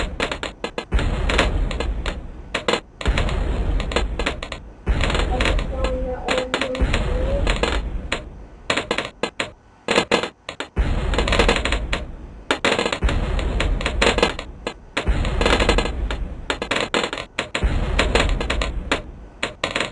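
Balloons pop rapidly, over and over, with crackling bursts.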